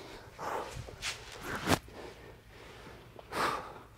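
A kettlebell thuds onto a hard floor.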